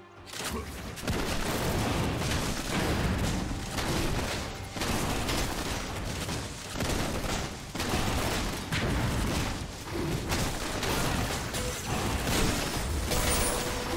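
Fantasy battle sound effects clash and thud rapidly.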